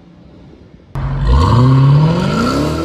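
A car engine starts with a loud roar.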